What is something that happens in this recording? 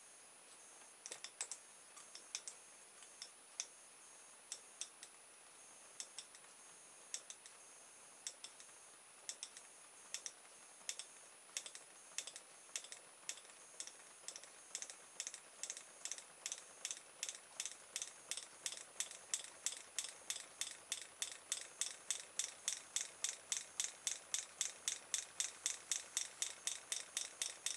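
Electric sparks snap sharply, at first now and then and then faster and faster.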